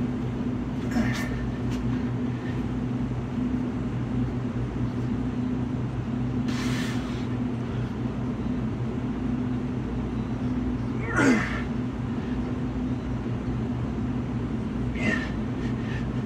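A man breathes hard in short bursts.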